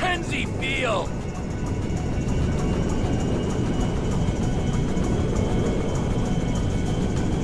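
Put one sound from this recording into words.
Jet engines of a large plane roar steadily.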